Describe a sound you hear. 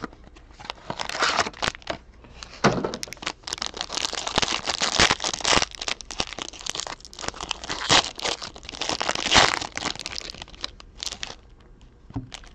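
Foil wrapping crinkles and rustles as hands tear it open.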